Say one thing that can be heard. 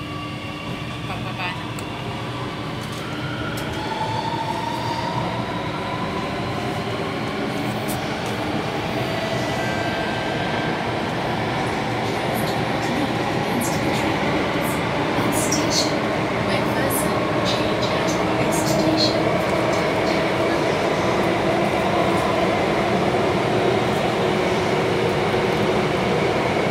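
A subway train rumbles steadily from inside a carriage, growing louder as it speeds up.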